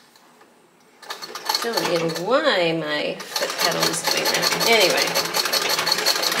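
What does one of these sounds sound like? A sewing machine whirs and clatters rapidly as it stitches.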